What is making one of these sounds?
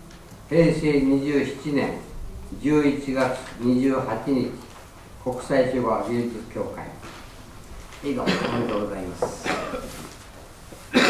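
An elderly man speaks calmly through a microphone in an echoing hall.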